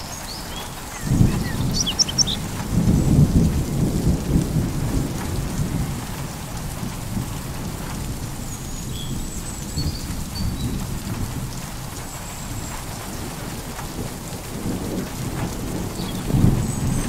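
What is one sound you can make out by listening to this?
Thunder rumbles low and deep in the distance, swelling and fading.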